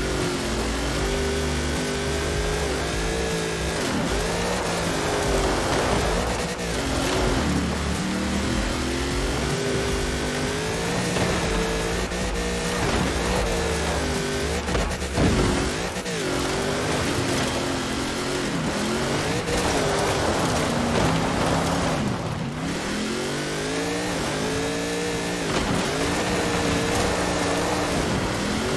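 Tyres crunch over snow and gravel.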